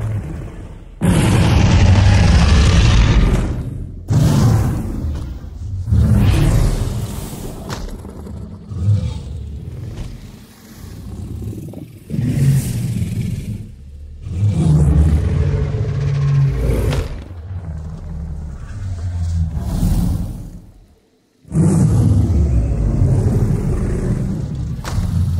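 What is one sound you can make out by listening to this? A huge creature roars loudly and deeply.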